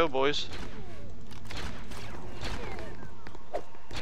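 Crossbows fire bolts in quick shots.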